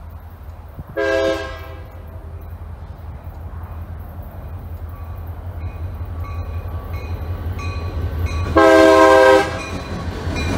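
A train horn blasts loudly, twice.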